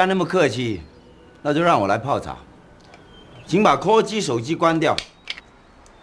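A man speaks calmly and slowly, close by.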